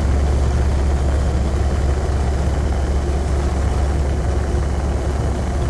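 A spaceship engine hums with a steady, deep rumble.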